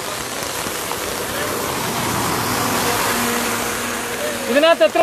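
A car swishes past on a wet road.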